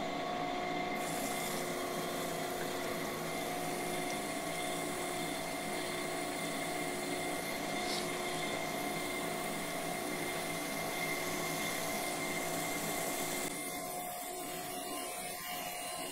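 Coolant splashes and hisses onto the spinning metal.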